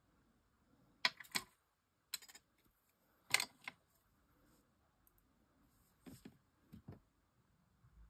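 Small metal tools click and tap on a hard tabletop.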